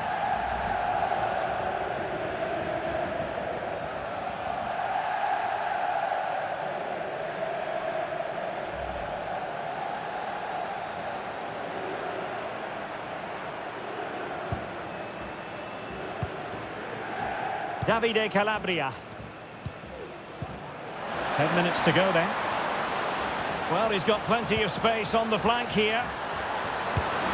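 A large crowd chants and roars in a stadium.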